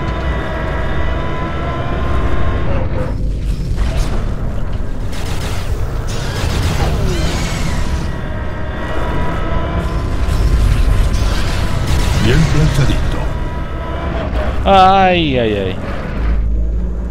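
A game vehicle's engine hums steadily.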